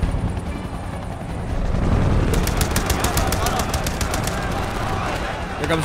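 A helicopter's rotor chops loudly overhead.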